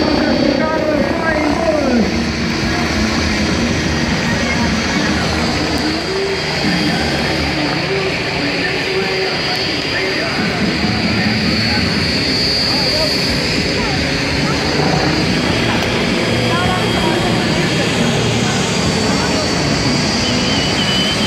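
A helicopter drones overhead in the distance.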